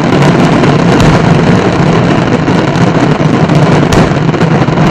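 Fireworks boom loudly.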